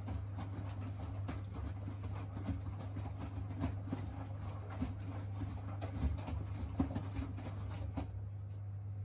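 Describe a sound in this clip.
Wet laundry tumbles and thumps inside a washing machine drum.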